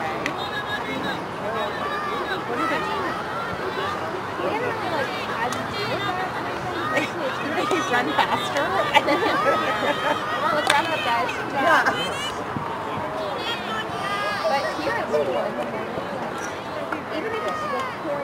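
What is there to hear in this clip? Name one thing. Players call out to each other across the field.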